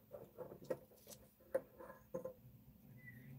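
Metal tongs clink against a crucible.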